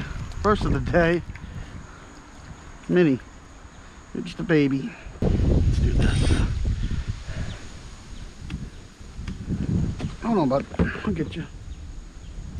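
A fish splashes and thrashes in shallow water close by.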